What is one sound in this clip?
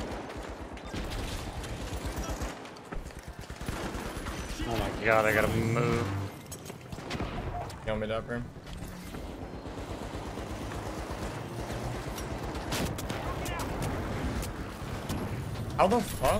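Explosions boom and crackle with falling debris.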